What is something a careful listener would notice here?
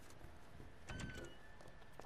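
A door clicks open.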